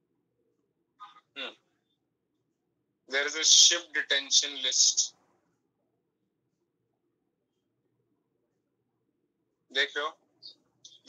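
A young man speaks in short bursts over an online call.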